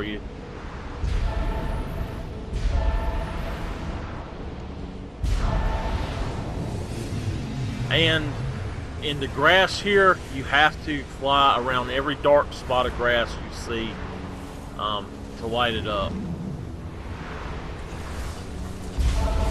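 Wind gusts and rushes steadily.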